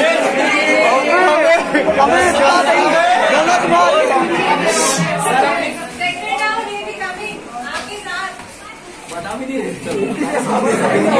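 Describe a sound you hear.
A crowd of young men and women talk and shout excitedly close by.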